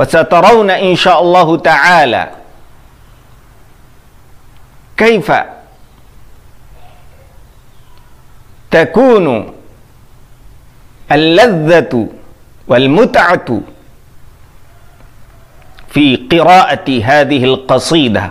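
A man speaks calmly and close to a microphone, in short phrases with pauses.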